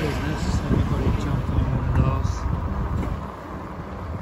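A vehicle engine idles close by.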